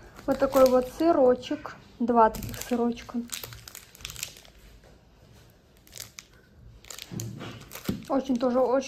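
Plastic food packaging crinkles and rustles as it is handled.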